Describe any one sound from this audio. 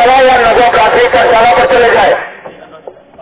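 A man shouts loudly through a megaphone.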